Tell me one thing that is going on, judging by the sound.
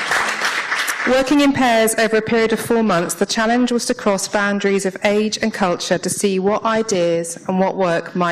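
A woman speaks into a microphone, heard through loudspeakers in a large room.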